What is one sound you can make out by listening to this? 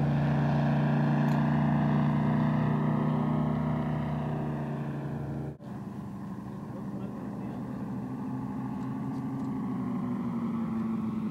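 A propeller plane's engine drones overhead, loud at first and then fading.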